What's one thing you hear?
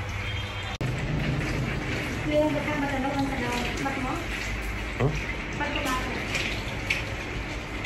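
Fingers rub and squelch through lathered hair.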